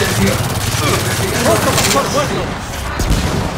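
Gunfire rattles from a rifle.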